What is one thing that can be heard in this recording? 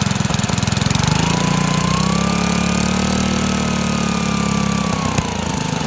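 A small engine revs higher, holds, then drops back down.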